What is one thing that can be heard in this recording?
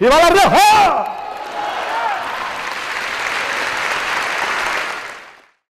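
A large audience applauds and cheers in a hall.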